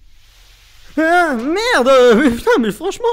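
A young man cries out loudly and excitedly, close to a microphone.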